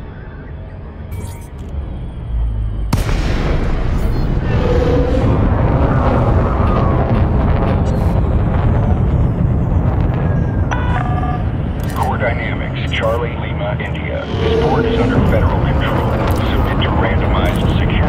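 A spacecraft engine rumbles steadily, growing louder as it speeds up.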